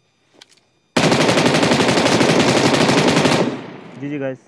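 A rifle fires a long, rapid burst of shots.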